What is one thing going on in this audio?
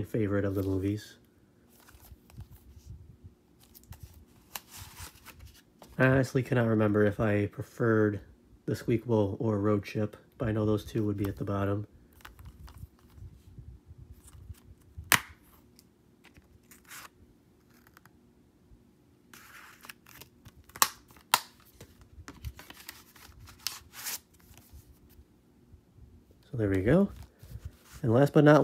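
Plastic disc cases click and rattle as they are handled.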